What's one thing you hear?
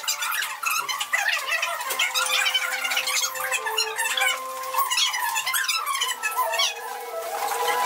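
A teenage girl speaks clearly nearby.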